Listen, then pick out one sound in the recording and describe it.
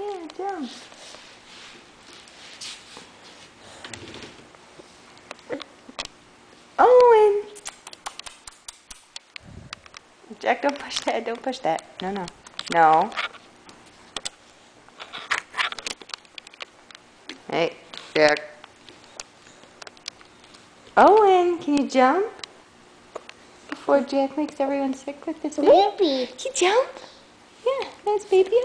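A baby babbles, coos and squeals close by.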